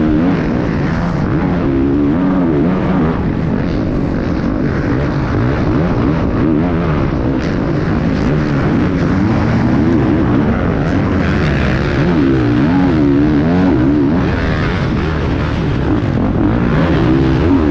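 A motorcycle engine roars close by, revving up and down as it races.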